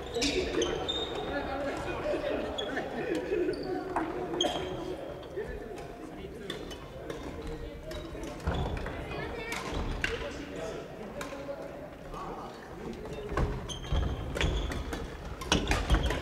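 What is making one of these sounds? Young men and women chatter and call out across the hall.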